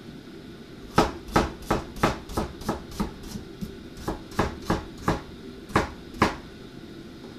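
A knife chops rapidly on a cutting board.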